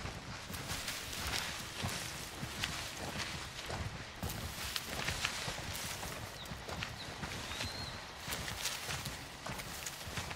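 Wind blows steadily through tall grass outdoors.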